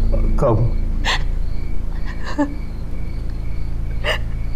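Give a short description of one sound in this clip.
A young woman sobs and sniffles quietly.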